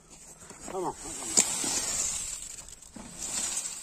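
Wet concrete slides out of a tipped wheelbarrow onto the ground.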